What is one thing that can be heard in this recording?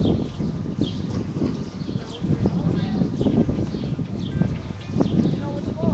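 A crowd of people murmurs and talks outdoors.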